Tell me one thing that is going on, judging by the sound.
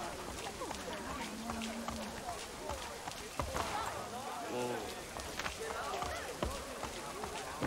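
Horse hooves clop steadily on cobblestones.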